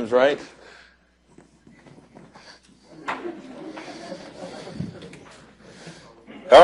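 A man lectures through a microphone in a large room.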